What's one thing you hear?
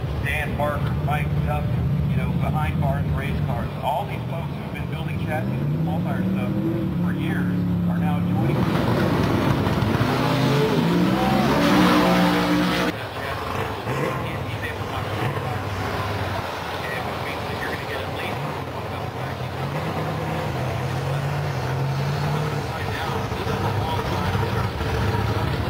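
A race car engine revs loudly in bursts.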